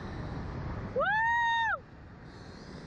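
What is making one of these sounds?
A woman lets out a long, high shriek.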